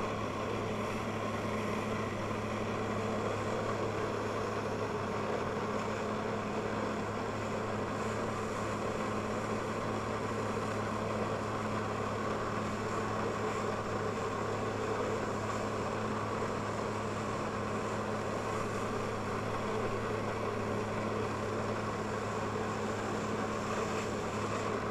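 Powerful water jets roar and hiss steadily.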